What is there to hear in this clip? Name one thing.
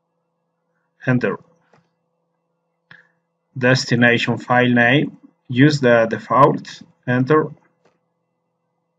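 A man speaks calmly into a microphone, in short phrases.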